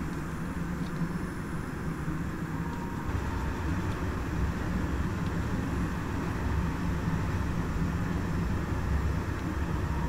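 Train wheels roll and clatter over rails.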